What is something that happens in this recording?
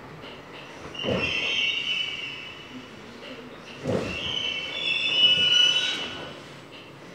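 Train brakes squeal briefly.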